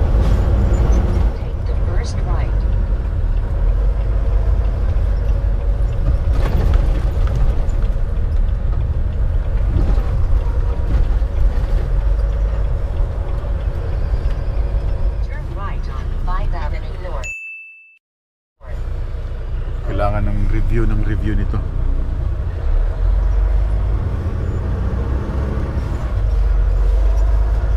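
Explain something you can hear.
Tyres hum and roar on the road.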